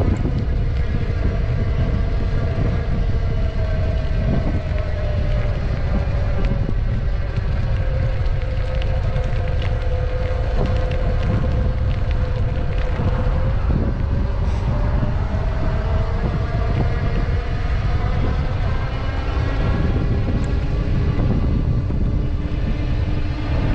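Tyres roll over a paved path.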